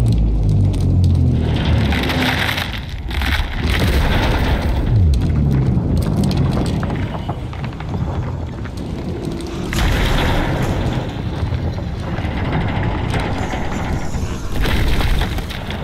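A huge mechanical creature creaks and clanks heavily as it moves.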